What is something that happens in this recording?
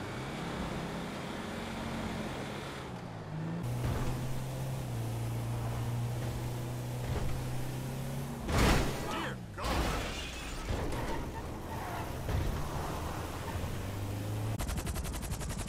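A car engine hums and revs as it drives.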